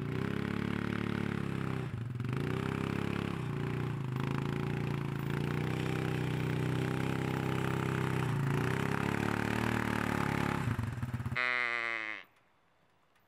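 An all-terrain vehicle engine runs loudly nearby, its pitch rising and falling as it drives.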